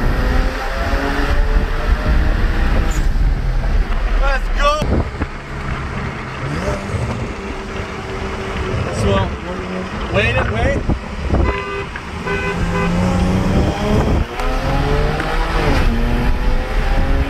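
Wind and road noise rush steadily inside the car.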